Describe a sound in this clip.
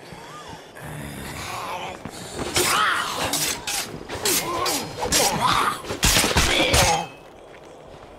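Heavy blows thud and smack in a brief struggle.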